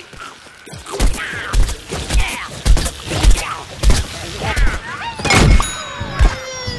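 A gun fires in rapid bursts, with booming shots.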